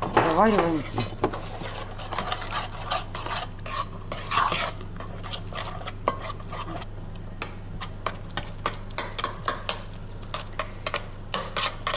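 A fork scrapes and clinks against an enamel bowl while stirring a thick batter.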